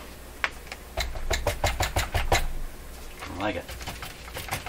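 A paper sheet rustles in a man's hands.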